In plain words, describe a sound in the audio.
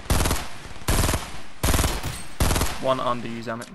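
Gunshots fire in quick, loud bursts.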